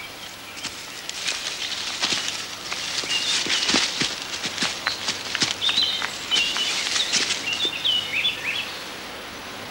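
A stag thrashes and rolls in rustling grass.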